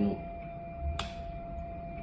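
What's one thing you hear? A button clicks once.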